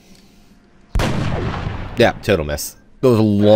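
A rifle fires a loud burst of shots.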